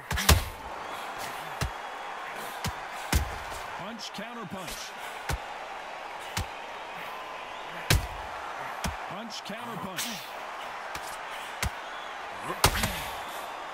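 Punches land with thuds and slaps.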